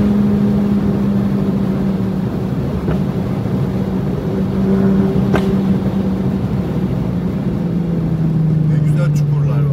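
A turbocharged four-cylinder hatchback eases off and slows.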